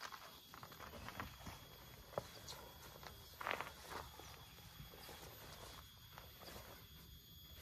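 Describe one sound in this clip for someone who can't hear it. A jacket's fabric rustles as a man pulls it on.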